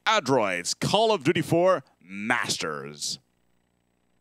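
A man speaks with animation into a close headset microphone.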